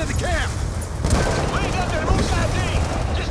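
Explosions boom close by.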